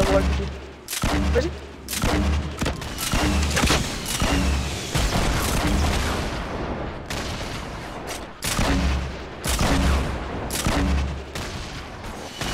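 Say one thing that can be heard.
Gunshots fire in quick bursts with loud bangs.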